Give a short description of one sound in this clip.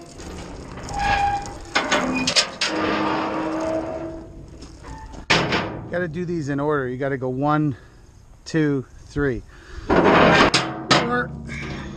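A heavy metal tailgate clanks and rattles as it is handled.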